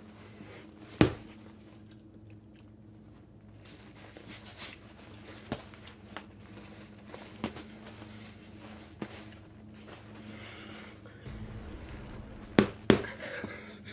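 Boxing gloves thump together.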